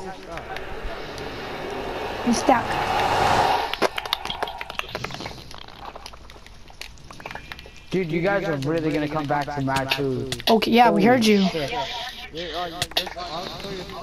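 Fire crackles and pops nearby.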